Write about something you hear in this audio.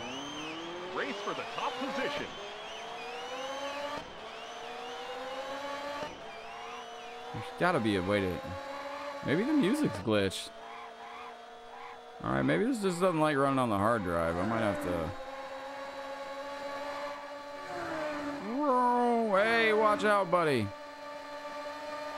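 A racing car engine roars steadily, rising in pitch as it speeds up.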